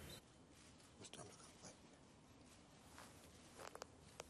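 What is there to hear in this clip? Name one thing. A blade scrapes and clicks against its metal sheath.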